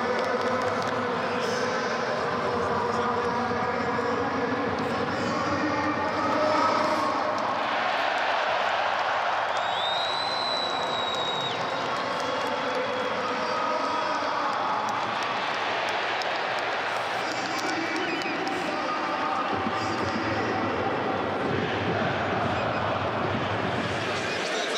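A large stadium crowd roars and cheers steadily throughout.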